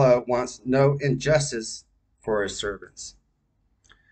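A man reads aloud calmly, close to a microphone.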